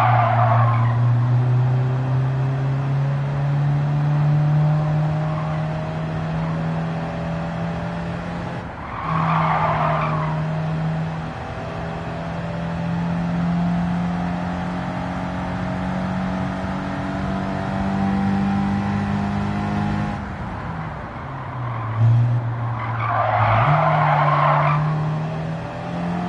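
Tyres screech in bursts through the corners.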